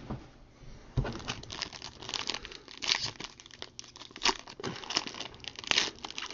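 A foil pack crinkles as hands tear it open.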